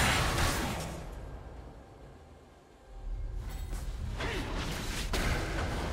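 Magic spell effects burst and clash in a video game battle.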